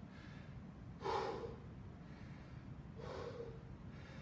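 A man breathes out heavily.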